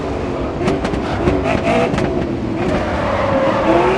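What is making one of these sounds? Tyres squeal through a tight bend.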